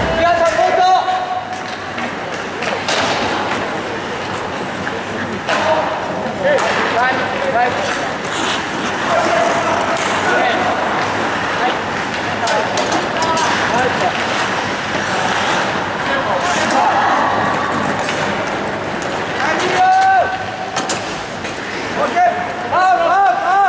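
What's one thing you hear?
A crowd shouts and cheers in a large echoing rink.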